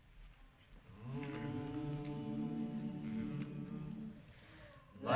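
A mixed choir sings together in an echoing hall.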